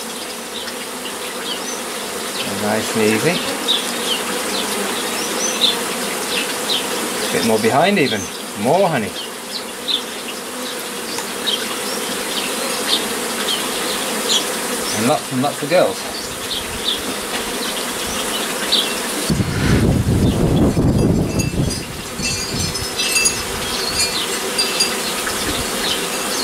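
Bees buzz steadily all around.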